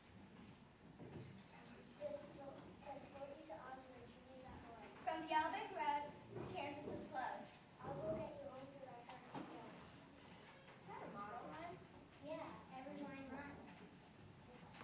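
Children speak lines on a stage through a microphone, echoing in a hall.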